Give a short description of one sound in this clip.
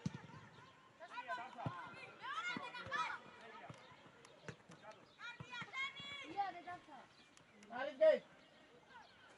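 Young players shout to each other across an open pitch outdoors.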